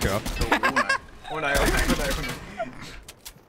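A young man laughs into a close microphone.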